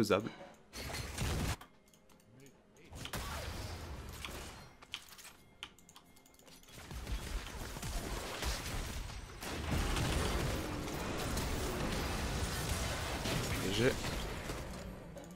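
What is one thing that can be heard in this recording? A young man talks close to a microphone with animation.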